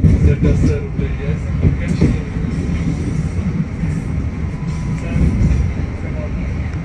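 Train wheels clatter over rail switches.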